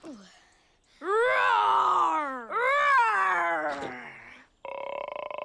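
Cartoon dragons cry out with rising and falling voices.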